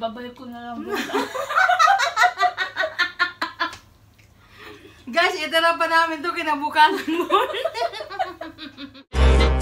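A woman laughs nearby.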